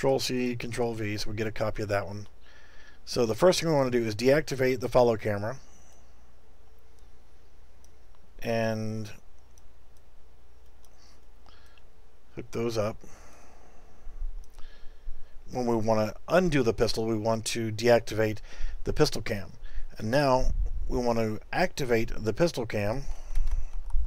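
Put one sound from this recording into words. A middle-aged man talks calmly and closely into a microphone, pausing now and then.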